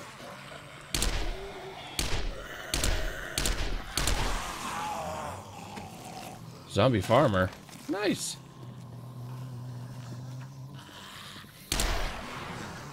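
A rifle fires several sharp shots.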